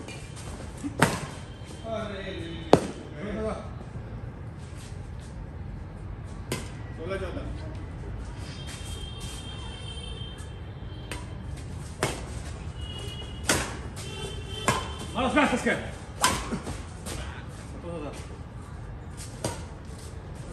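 A shuttlecock is struck sharply by rackets.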